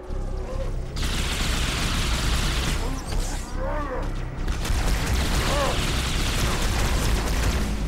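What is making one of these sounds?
An energy rifle fires in rapid crackling bursts.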